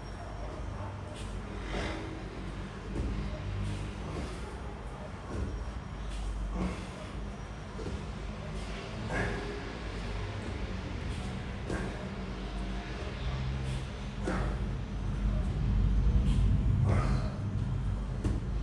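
A man exhales sharply with each sit-up.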